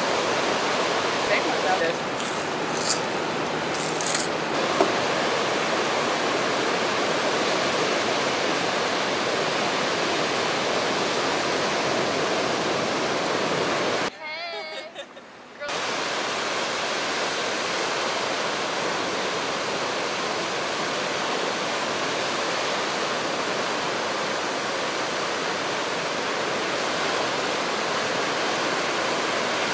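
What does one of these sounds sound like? Ocean waves break and rush in a steady roar.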